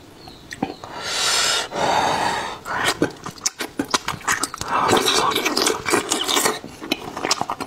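A man slurps loudly close to a microphone.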